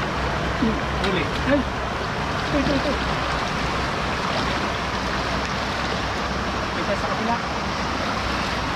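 Water rushes and churns steadily.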